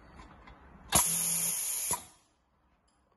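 A sewing machine blows a short, loud hiss of air.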